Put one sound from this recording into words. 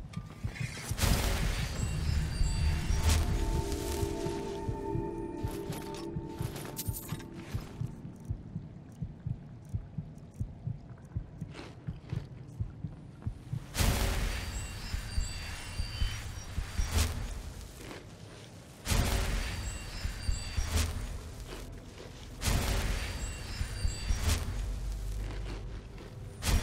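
A magic spell crackles and hums with a bright shimmering rush.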